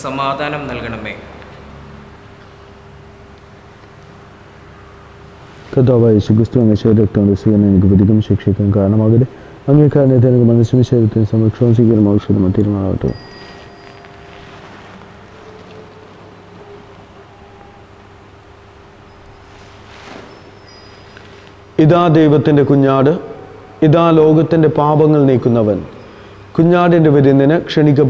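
A man chants in a steady, sung voice through a microphone.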